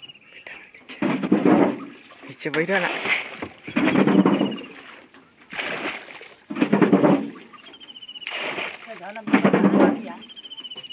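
A wooden pole splashes in the water.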